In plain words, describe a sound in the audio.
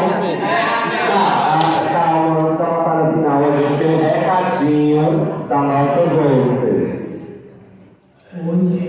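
Music with a singing voice plays loudly over a loudspeaker in an echoing hall.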